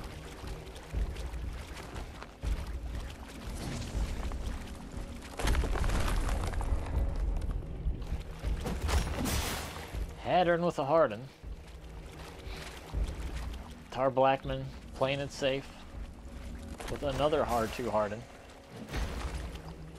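Water splashes as figures wade through it.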